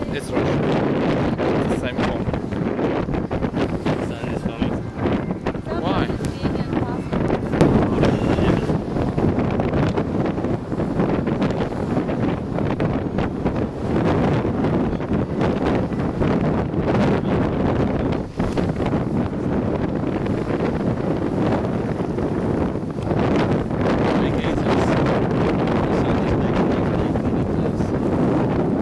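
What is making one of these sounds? Waves splash against the hull of a moving boat.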